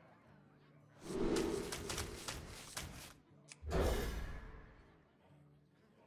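Game cards whoosh and flip over.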